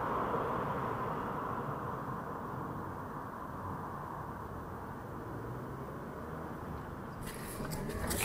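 An electric scooter motor whines softly.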